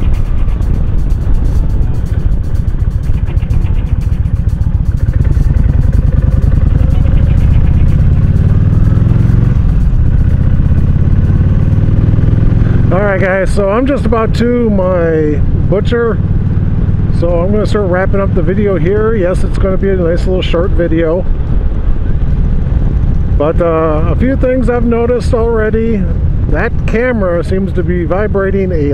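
A motorcycle engine rumbles steadily and revs up as it speeds along.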